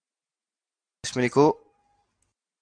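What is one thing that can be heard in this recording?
A man speaks a few words briefly into a microphone.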